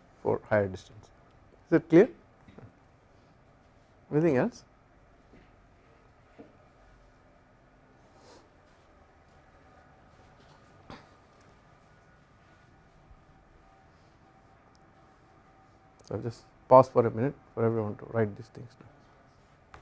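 A man speaks calmly into a close microphone, in short bursts with long pauses.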